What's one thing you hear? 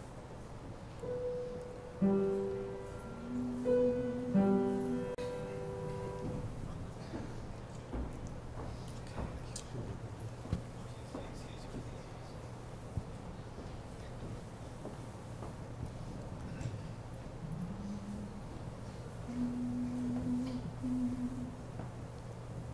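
A group of men sing long, held notes together.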